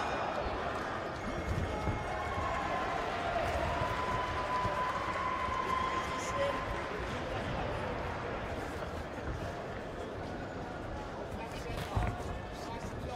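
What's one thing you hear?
Boxing gloves thud against bodies.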